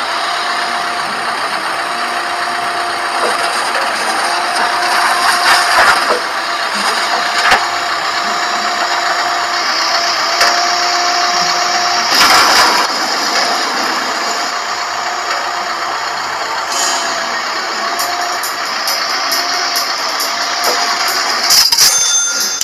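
An excavator engine hums steadily.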